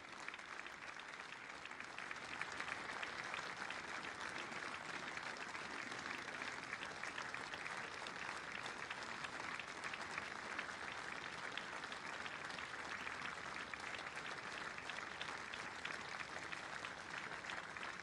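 A large crowd applauds outdoors.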